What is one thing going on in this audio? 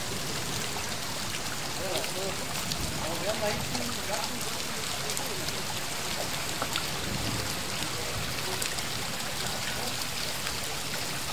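Light rain falls and patters on wet pavement outdoors.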